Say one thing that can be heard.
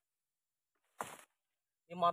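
Footsteps crunch on dry leaves and soil.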